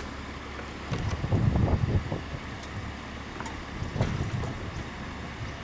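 A man yanks a starter cord on a small engine several times.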